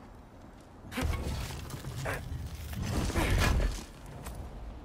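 A heavy chest bursts open with a deep rumble.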